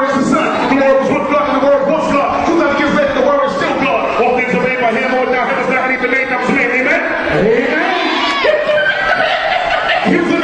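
A man raps loudly into a microphone over loudspeakers in a large hall.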